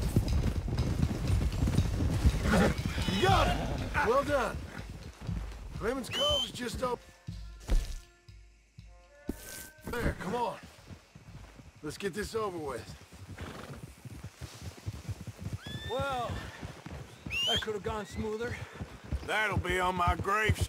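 Horses' hooves thud as they gallop over grass.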